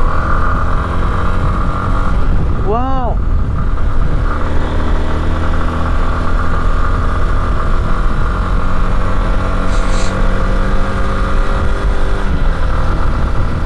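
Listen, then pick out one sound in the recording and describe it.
A motorcycle engine hums steadily, shifting pitch as the bike rides along.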